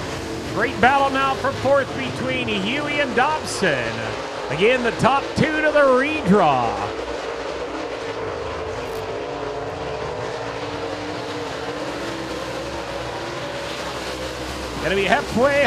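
Race car engines roar and rev up and down.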